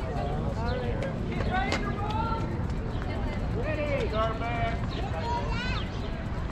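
Young children squeal and shout in high voices close by.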